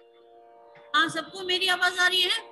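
A middle-aged woman speaks over an online call.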